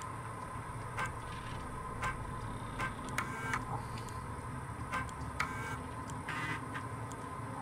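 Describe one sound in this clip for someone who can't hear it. Short electronic beeps sound again and again.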